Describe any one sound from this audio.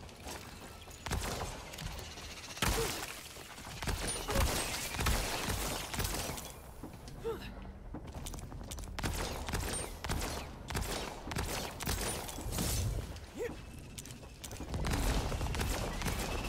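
Gunfire and impacts crack and thud in quick bursts.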